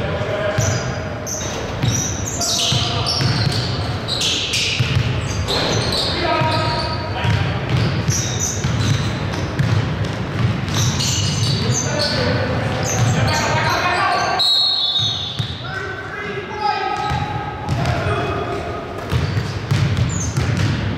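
Sneakers squeak on the hardwood floor.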